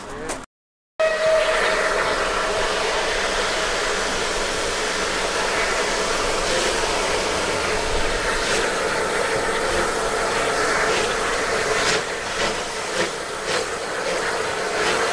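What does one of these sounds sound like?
A steam locomotive's wheels rumble and clank along the rails.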